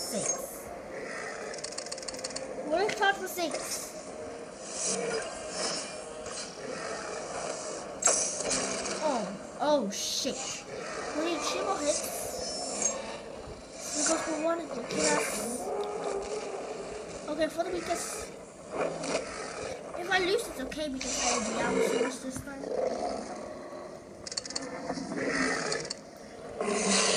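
Dinosaurs roar and growl through a small tablet speaker.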